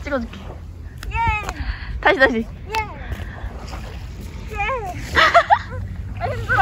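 A young woman shouts with glee.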